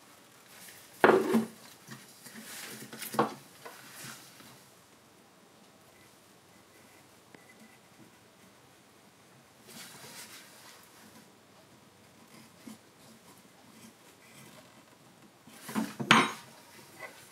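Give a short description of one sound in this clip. A wooden tool knocks on a wooden board.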